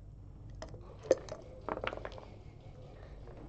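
Dice rattle and tumble across a board.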